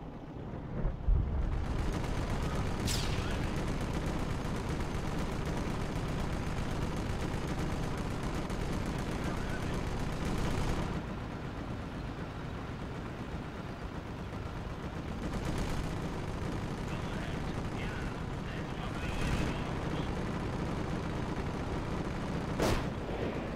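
Explosions boom now and then in a battle.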